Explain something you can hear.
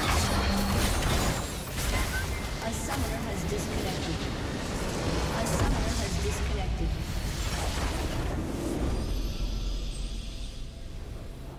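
Spell blasts and clashing effects crash loudly in a video game battle.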